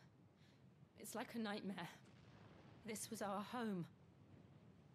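A young woman speaks softly and sadly.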